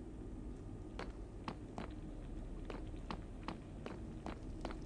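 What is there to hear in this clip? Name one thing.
Footsteps tap on a hard floor at a steady pace.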